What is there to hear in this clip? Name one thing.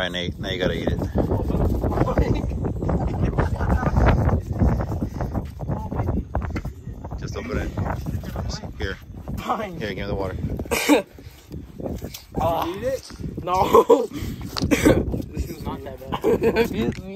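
Young men talk and laugh close by.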